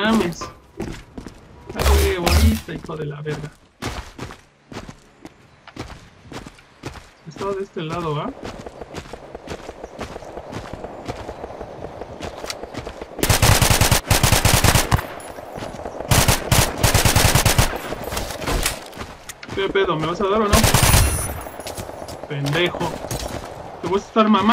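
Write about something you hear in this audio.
A man talks with animation close to a microphone.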